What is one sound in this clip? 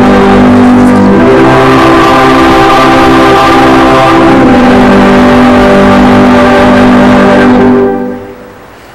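A choir sings a long held chord in a large echoing hall, then stops.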